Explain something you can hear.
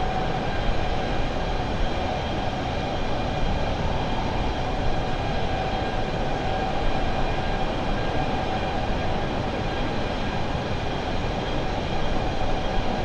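Jet engines roar steadily as an airliner cruises.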